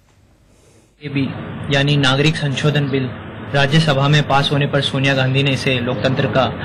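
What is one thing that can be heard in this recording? A young man speaks close to a phone microphone, with emotion.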